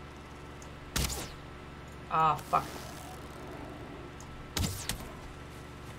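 A weapon whooshes and thuds in a swing.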